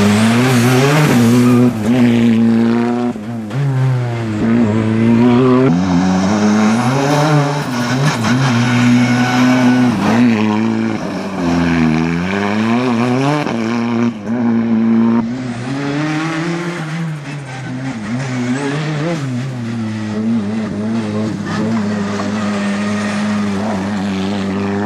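A turbocharged four-cylinder rally car revs hard through corners, its engine rising and falling.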